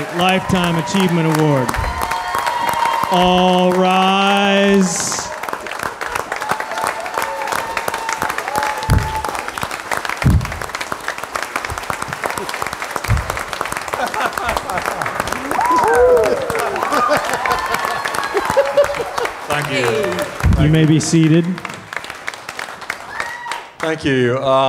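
A large audience claps and cheers loudly in a big hall.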